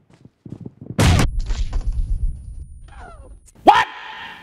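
A grenade explodes with a loud boom.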